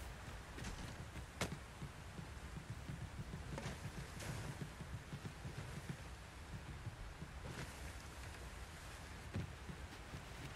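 Hands and feet knock on wooden ladder rungs during a climb.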